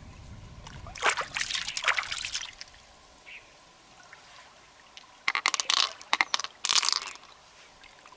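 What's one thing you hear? Wet hands scrape and squelch flesh out of a large shell.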